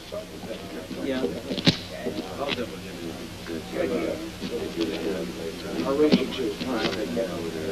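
Several men chatter in the background of a room.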